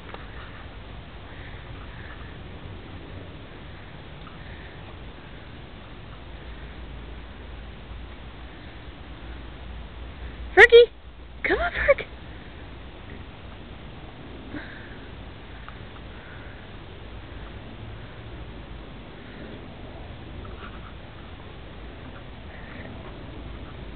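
Two dogs romp and scuffle on crunchy snow outdoors.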